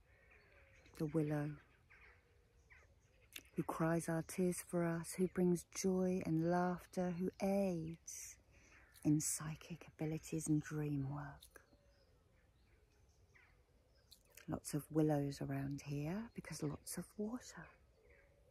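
A middle-aged woman talks calmly and closely into the microphone, in short bursts with pauses.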